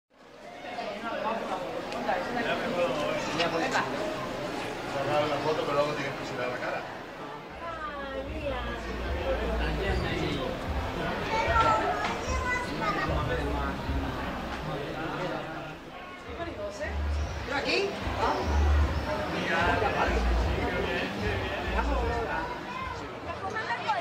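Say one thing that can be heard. A crowd of men, women and children chatter nearby.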